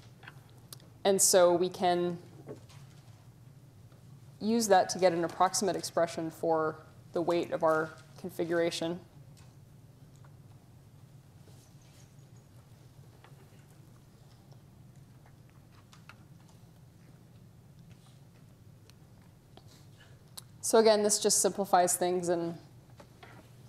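A woman speaks through a microphone in short bursts with long pauses, lecturing calmly.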